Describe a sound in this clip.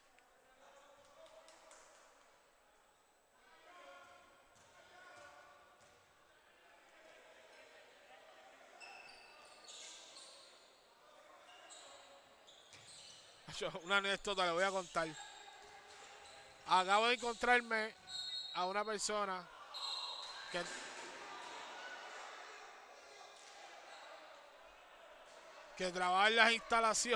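Players call out across a large echoing gym.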